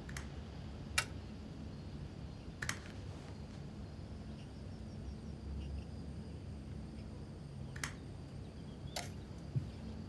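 A remote control clicks as its buttons are pressed.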